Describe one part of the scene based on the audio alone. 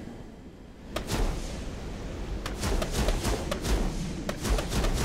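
An aircraft cannon fires in short rapid bursts.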